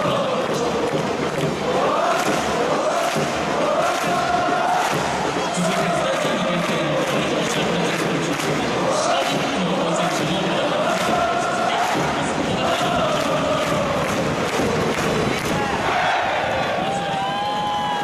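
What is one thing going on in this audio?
A stadium crowd claps in rhythm.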